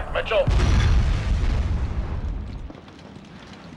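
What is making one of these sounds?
A fiery explosion roars and rumbles away.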